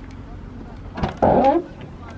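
A car's rear hatch unlatches with a click.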